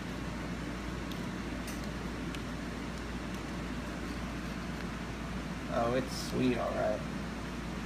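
Small pieces of eggshell crack and click under a pair of tweezers.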